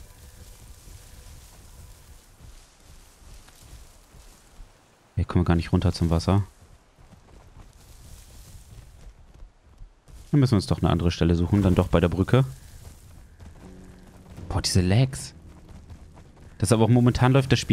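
A large animal's footsteps thud softly on a dirt path.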